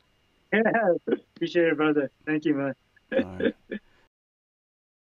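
A man talks cheerfully into a microphone over an online call.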